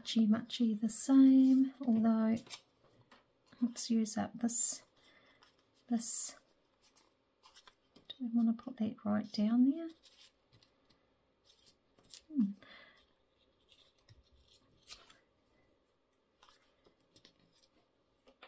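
Paper rustles and crinkles under handling.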